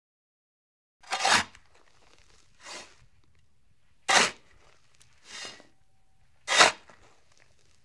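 A shovel digs into soil, scraping repeatedly.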